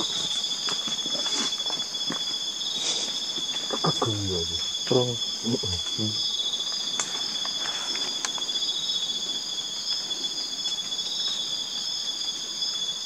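Leaves rustle softly as hands move through undergrowth.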